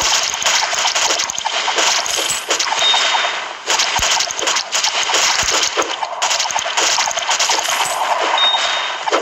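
Mobile game sound effects of rapid shots and hits play.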